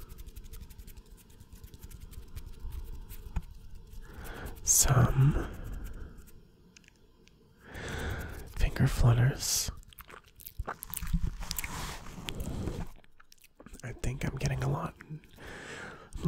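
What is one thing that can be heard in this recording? Fingers rub and flutter close to a microphone.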